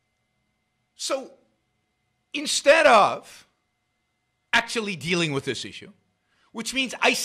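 An elderly man speaks calmly and close to a microphone, in short bursts.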